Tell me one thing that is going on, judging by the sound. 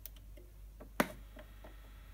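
A turntable's tone arm drops onto a record with a thud.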